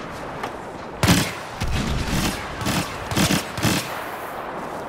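Blaster shots fire in quick bursts.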